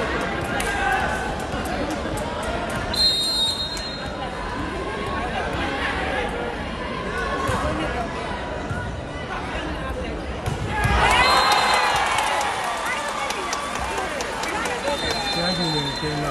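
A ball thumps as players strike it.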